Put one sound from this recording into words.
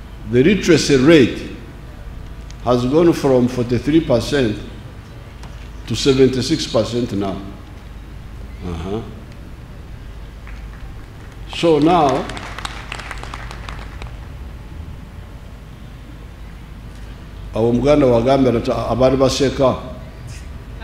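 An elderly man speaks slowly in bursts through a microphone and loudspeakers outdoors, with pauses between phrases.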